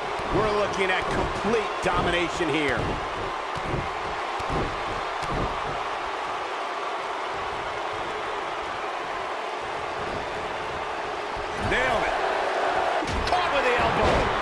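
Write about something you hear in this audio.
A large arena crowd cheers and murmurs.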